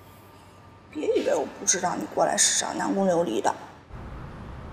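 A woman speaks, close by.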